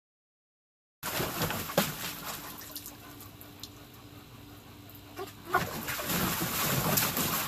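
A dog splashes and paddles in shallow water.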